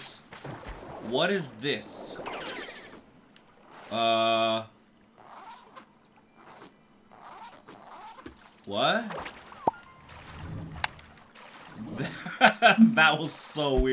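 Water splashes as a small figure swims.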